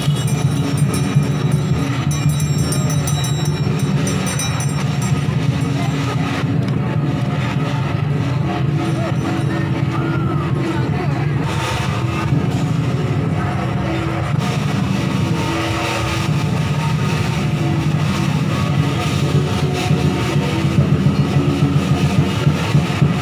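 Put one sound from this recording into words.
A crowd murmurs and chatters outdoors in a busy street.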